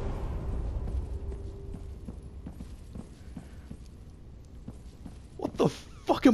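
Heavy armoured footsteps run across a stone floor.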